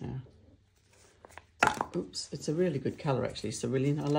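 A jar is set down on a papered table with a soft knock.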